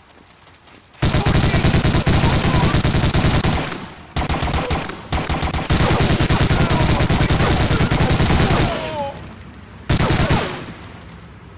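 A machine gun fires long, rapid bursts close by.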